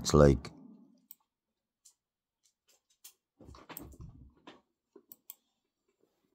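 A computer mouse clicks softly.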